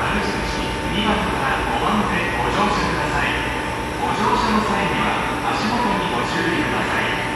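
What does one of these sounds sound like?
Distant voices murmur and echo in a large underground hall.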